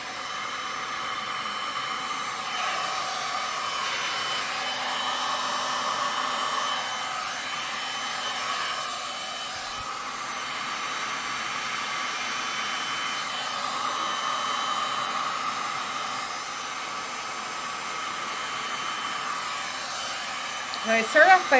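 A heat gun blows with a steady whooshing hum.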